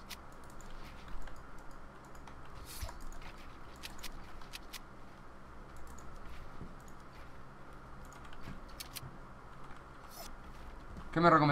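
Keys and a mouse click rapidly.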